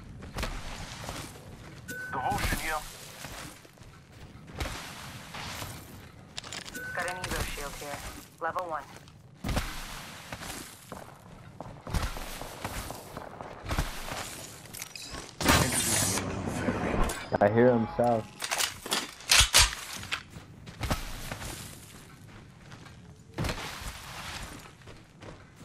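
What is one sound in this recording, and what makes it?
Footsteps run over dirt and gravel.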